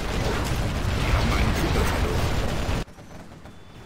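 Gunfire and explosions rumble in a loud battle.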